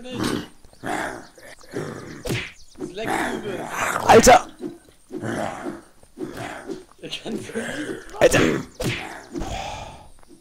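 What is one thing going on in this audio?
A melee weapon thuds against a body in quick blows.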